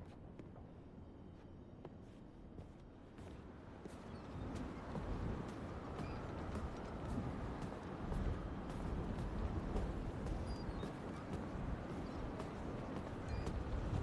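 Footsteps crunch on snowy wooden boards.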